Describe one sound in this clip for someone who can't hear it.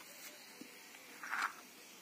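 A brick scrapes on sandy ground as a man moves it.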